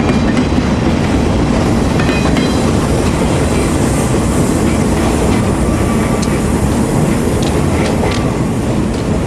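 A freight train rumbles past, its wheels clattering and squealing on the rails.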